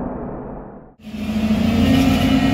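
A heavy excavator engine rumbles steadily.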